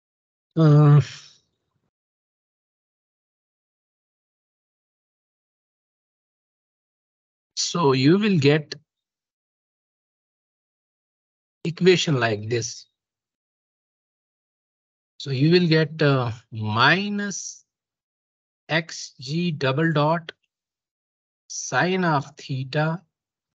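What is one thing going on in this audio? A young man speaks calmly in short phrases over an online call.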